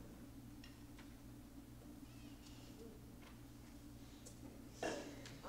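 A drummer lightly taps a cymbal in an echoing hall.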